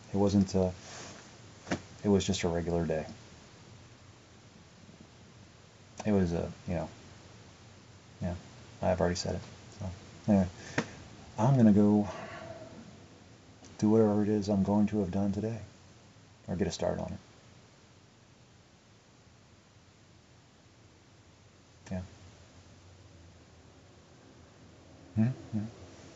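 A young man talks calmly close to the microphone, in short bursts with pauses.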